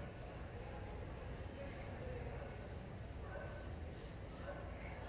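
Static hisses steadily from a television.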